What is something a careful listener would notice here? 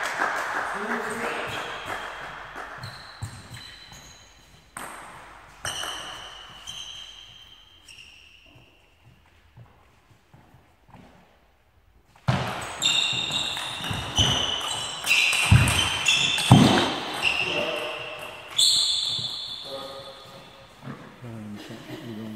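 A table tennis ball clicks back and forth off bats and the table in an echoing hall.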